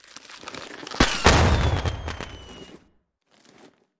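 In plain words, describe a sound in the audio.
A party popper goes off with a sharp bang, then sparkles crackle and fade.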